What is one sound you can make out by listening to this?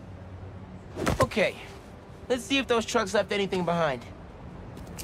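A young man speaks casually.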